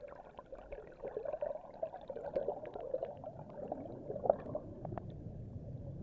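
Air bubbles gurgle and pop underwater.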